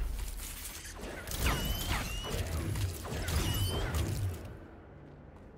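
A magic shield hums and crackles.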